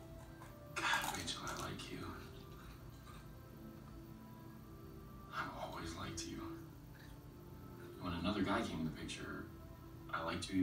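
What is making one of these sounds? A young man speaks quietly, heard through a television speaker.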